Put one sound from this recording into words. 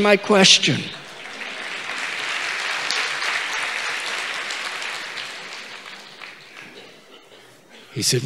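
A large audience laughs together.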